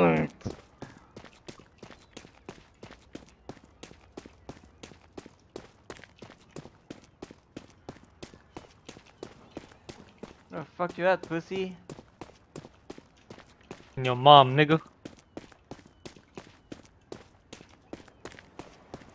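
Quick footsteps patter steadily on the ground.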